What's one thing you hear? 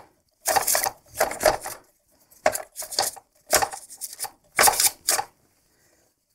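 Plastic parts click and rattle.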